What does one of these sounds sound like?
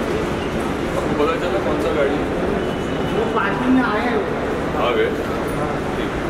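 A man speaks briefly and casually nearby in a large echoing space.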